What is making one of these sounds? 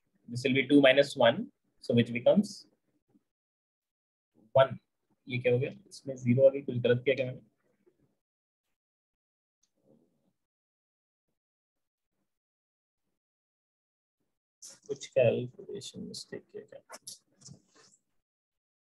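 A man talks calmly into a microphone, explaining in short bursts with pauses.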